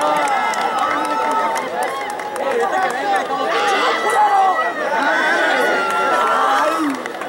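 A crowd of young men chatters and calls out.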